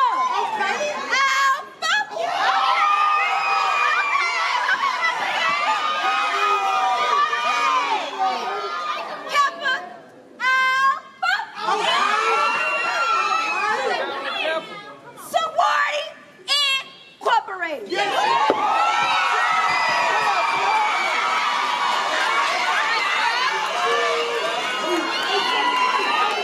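A young woman shouts and chants loudly.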